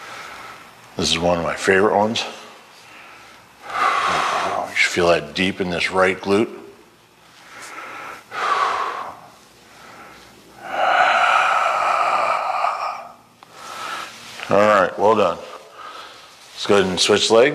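A man speaks calmly in an echoing room, in short bursts.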